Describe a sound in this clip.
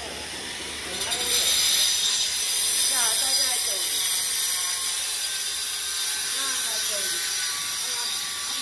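A power cutter whines as it cuts tile.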